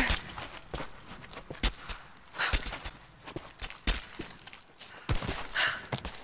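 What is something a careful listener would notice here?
Hands and boots scrape and knock against rough stone while climbing.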